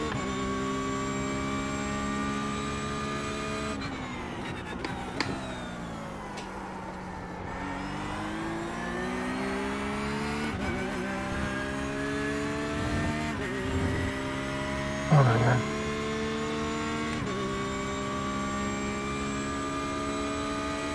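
A racing car engine roars, dropping in pitch on braking and rising again as it speeds up through the gears.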